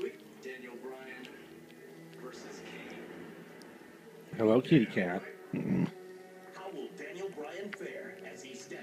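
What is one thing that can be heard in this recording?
A cat chews and laps at food up close.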